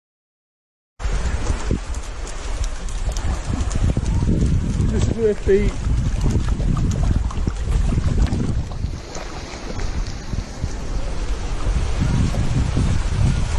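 Shallow water washes gently over sand outdoors.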